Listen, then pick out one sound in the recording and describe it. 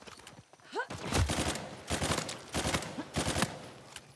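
A pistol fires single shots.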